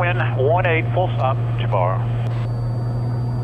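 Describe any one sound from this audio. A man speaks calmly through a headset intercom.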